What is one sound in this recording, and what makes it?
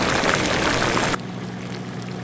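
Soup bubbles and simmers in a pot.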